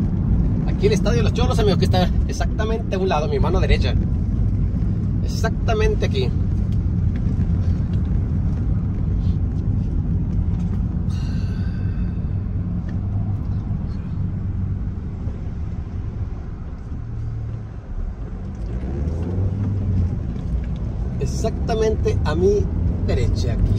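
A car engine hums and tyres roll steadily on the road.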